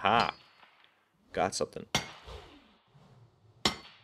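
A pickaxe strikes rock with sharp clinks.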